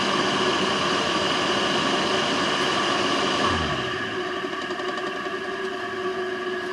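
An electric motor hums and whines steadily, then grows a little quieter.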